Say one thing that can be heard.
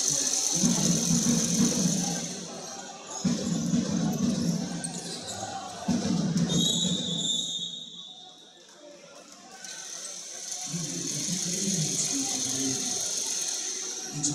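A ball bounces on a hard court.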